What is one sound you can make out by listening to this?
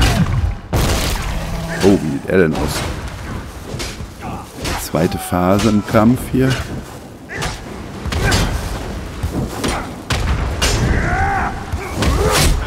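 A large beast growls and roars.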